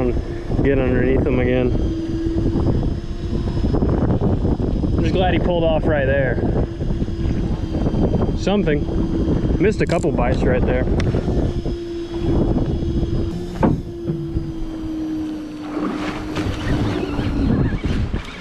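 A fishing reel hums steadily as it winds in line.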